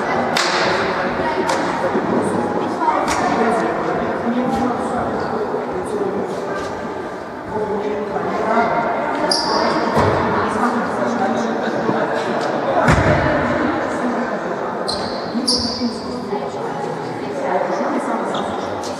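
Young people chatter in a large echoing hall.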